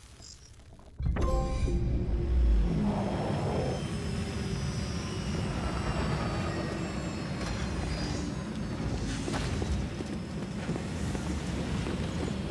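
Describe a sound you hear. A huge machine rumbles deeply close by.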